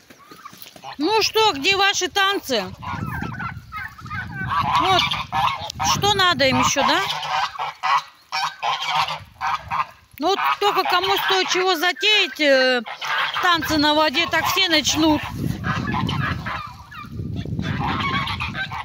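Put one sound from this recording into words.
Geese honk and cackle loudly nearby.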